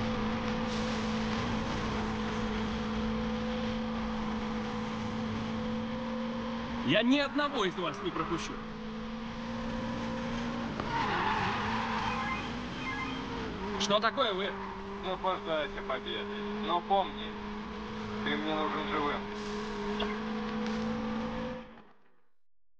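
A racing car engine roars at high speed.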